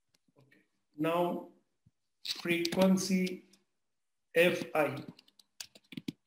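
A man speaks calmly into a microphone, as if explaining.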